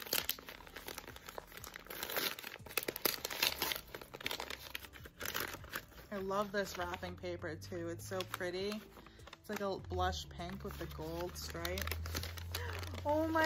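Tissue paper rustles and crinkles close by.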